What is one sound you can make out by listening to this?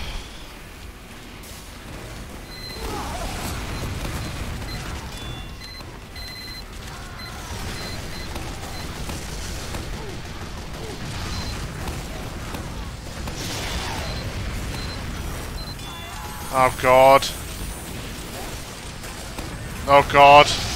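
Gunfire and explosions rattle in a fast video game.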